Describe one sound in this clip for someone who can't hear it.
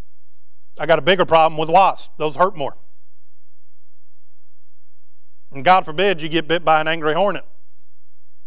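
A man speaks calmly into a microphone, in short phrases with pauses.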